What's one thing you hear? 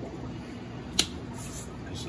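A small plastic lid clicks once.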